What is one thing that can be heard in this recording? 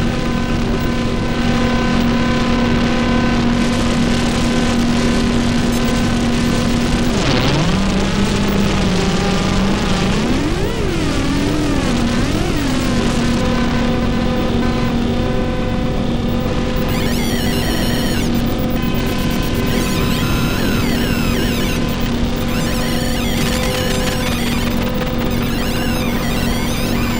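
Electronic music drones with steady hums and sweeping, warbling tones, loud and close.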